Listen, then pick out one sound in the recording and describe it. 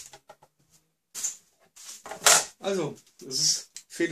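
A plate clatters onto a wooden board.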